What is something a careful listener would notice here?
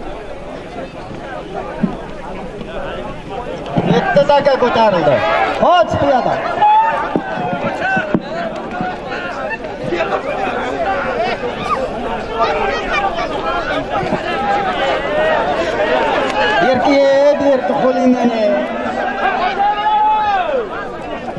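A crowd of men shout and call out loudly outdoors.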